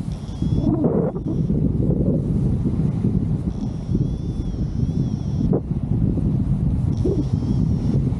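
Strong wind rushes and buffets past, loud and steady.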